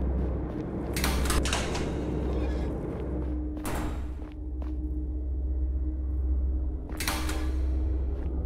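A metal door handle clicks and a door swings open.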